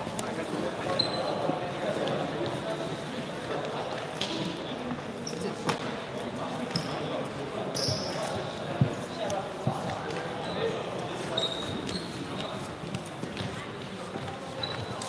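Several young men chatter and call out in a large echoing hall.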